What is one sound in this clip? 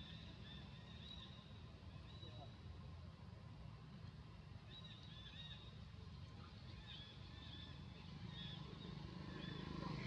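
A baby monkey squeaks and chirps softly.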